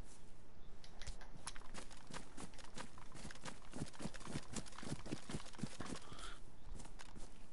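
Footsteps swish quickly through tall grass.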